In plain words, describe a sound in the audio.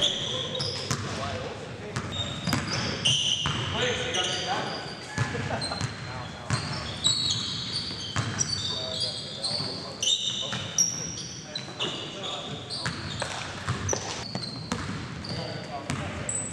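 Sneakers squeak sharply on a hard court floor, echoing in a large gym.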